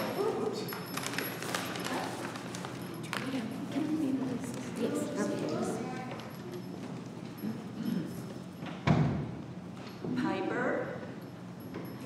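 A woman speaks quietly near a microphone in an echoing room.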